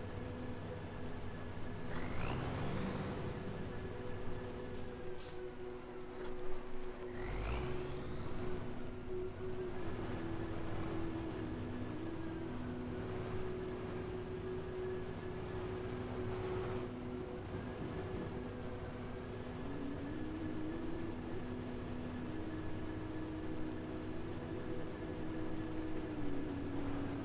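A truck engine rumbles and whines steadily as it climbs over rocks.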